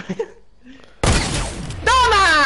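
A gun fires a loud blast.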